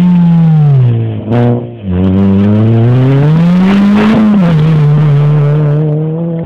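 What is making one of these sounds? Gravel sprays and crunches under a rally car's tyres.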